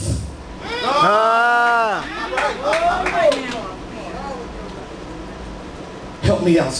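A man shouts and sings out loudly through a microphone in an echoing hall.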